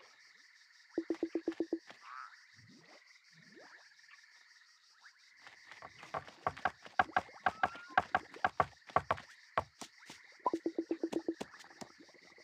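Hands clap quickly several times.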